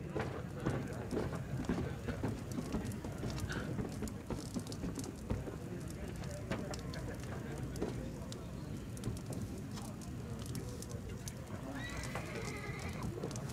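A fire crackles softly in a fireplace.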